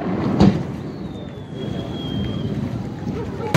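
A firework rocket whistles as it climbs.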